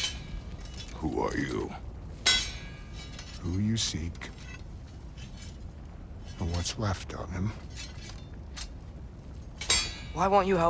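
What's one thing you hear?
A man speaks with a rasping, animated voice.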